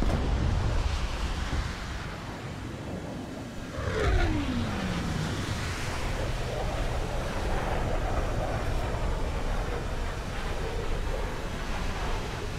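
A propeller plane's engine drones steadily with rushing wind.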